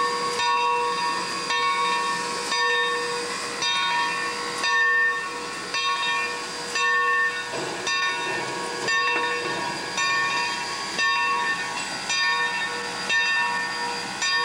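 A steam locomotive chuffs in a steady, even rhythm.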